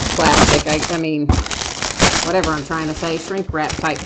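Plastic wrap crinkles close by.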